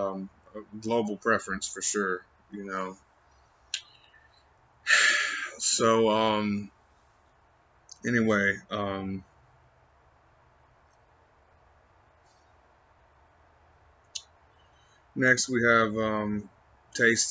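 A young man speaks calmly and close by, in short bursts with pauses.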